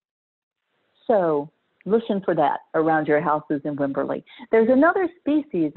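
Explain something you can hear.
A middle-aged woman speaks calmly through an online call.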